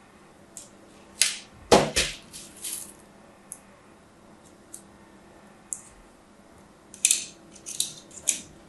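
A blade scrapes and crunches into soft soap.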